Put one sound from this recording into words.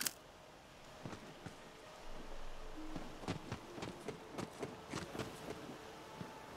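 Footsteps thud quickly on dirt and grass.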